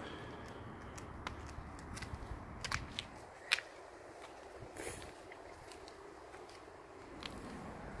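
Footsteps tap on a paved path outdoors.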